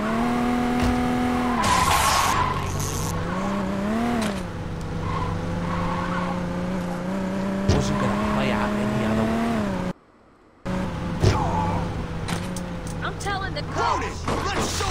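A car engine revs.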